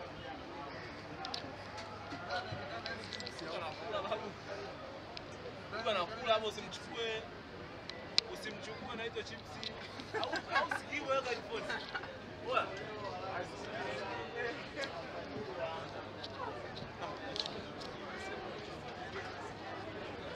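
Several young men chatter and laugh in the background.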